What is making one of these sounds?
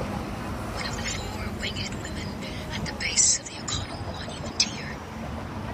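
A seagull cries overhead.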